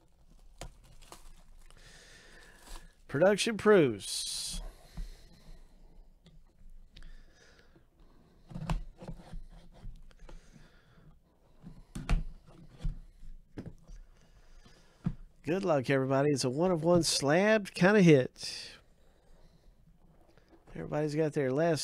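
Hands handle a cardboard box with soft scrapes and knocks.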